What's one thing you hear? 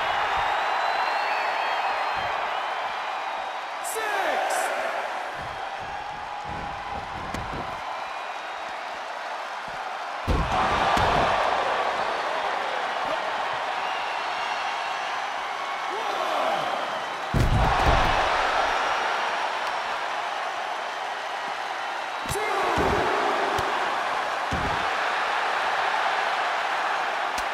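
A large crowd cheers and roars throughout.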